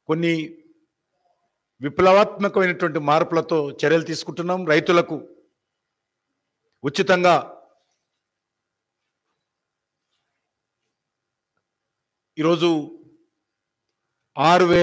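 A middle-aged man speaks calmly into a microphone, pausing often.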